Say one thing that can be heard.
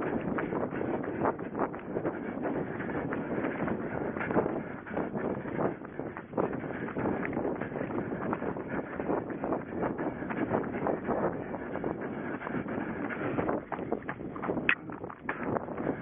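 Wind buffets a microphone.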